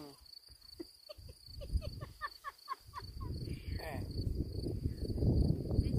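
A young woman laughs nearby.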